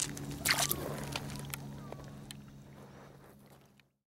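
Small waves lap gently on a pebble shore.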